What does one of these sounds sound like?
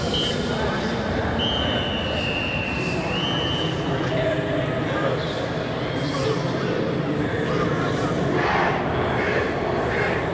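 A crowd cheers and chatters throughout the stands.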